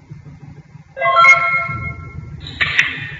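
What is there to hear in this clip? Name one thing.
A computer game plays a bright chiming sound effect.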